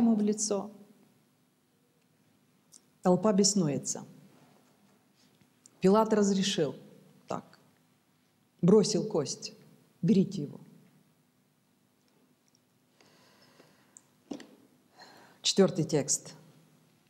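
A middle-aged woman speaks calmly through a close microphone, in short phrases with pauses.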